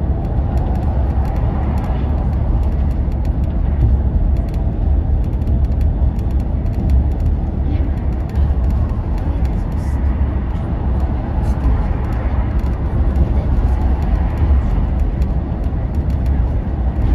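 Tyres roar steadily on a motorway.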